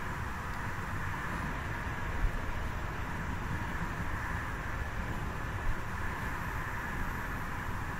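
A train engine rumbles steadily.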